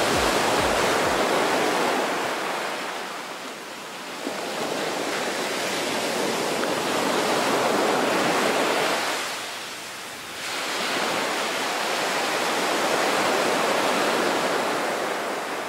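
Wind roars past a fast-moving boat.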